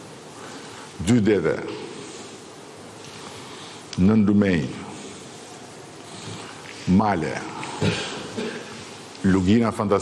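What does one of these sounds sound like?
An elderly man speaks slowly and emphatically into a microphone, with pauses between phrases.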